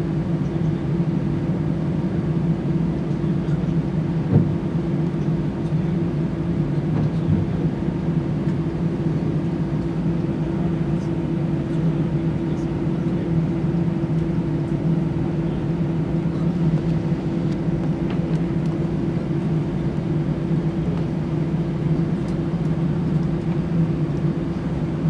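A jet airliner's engines hum steadily, heard from inside the cabin as the plane taxis.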